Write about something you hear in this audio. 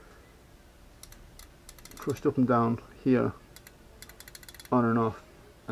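Metal motor parts click and rattle softly as they are handled.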